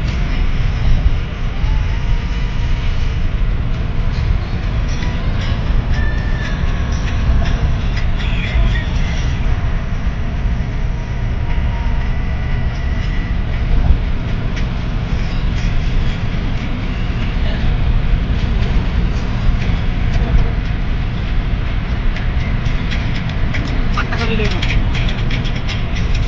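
A vehicle's engine drones steadily with road noise rumbling underneath.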